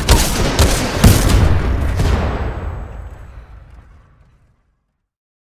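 A heavy explosion booms and rumbles away.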